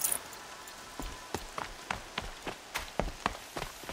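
Footsteps crunch quickly over rough ground.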